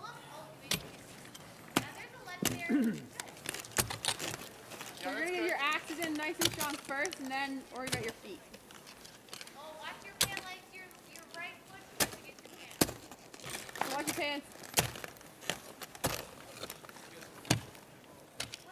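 Ice axes strike and chip into hard ice again and again.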